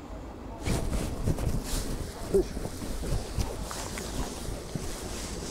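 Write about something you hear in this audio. Wind blows and buffets outdoors.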